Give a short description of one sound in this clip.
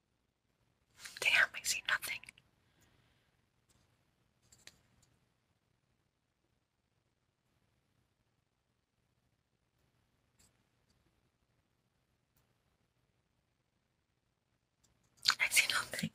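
A young woman speaks calmly, close to a microphone, in short bursts.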